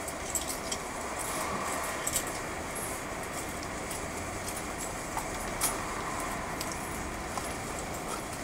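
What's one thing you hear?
A car drives past close by on a street.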